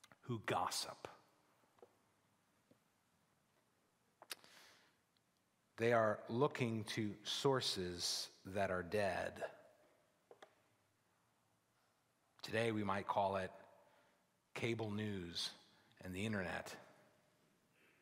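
A middle-aged man speaks with animation into a microphone, in bursts with pauses, in a large echoing hall.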